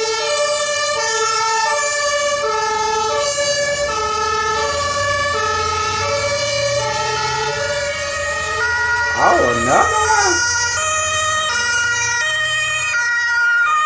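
A two-tone fire truck siren alternates between a high and a low note.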